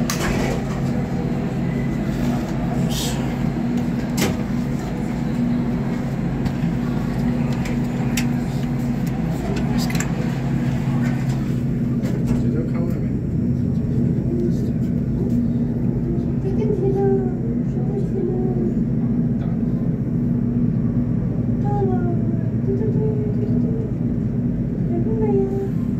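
An elevator hums steadily.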